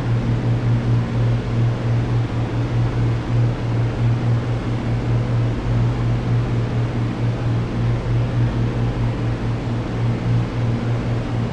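An aircraft engine drones steadily with a low hum.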